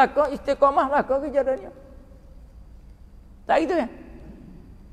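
An elderly man preaches into a microphone with animation, heard through a loudspeaker.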